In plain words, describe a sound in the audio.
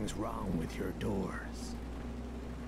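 A man speaks calmly at close range.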